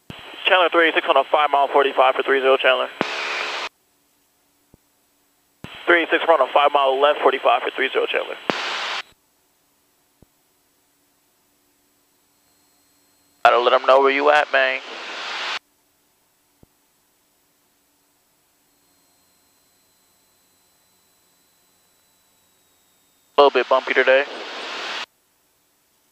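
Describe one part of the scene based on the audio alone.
A young man speaks calmly in short bursts over a radio headset.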